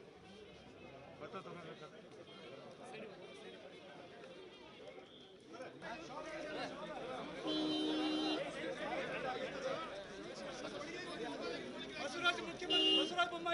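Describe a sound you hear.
A crowd of men talks and murmurs close by, outdoors.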